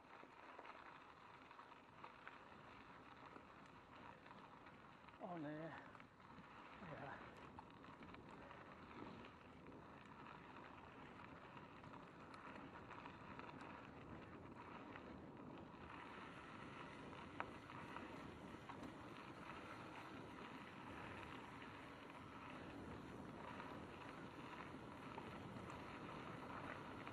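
Bicycle tyres crunch and rattle over a gravel trail.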